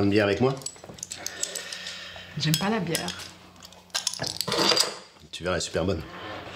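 A middle-aged man speaks coaxingly, close by.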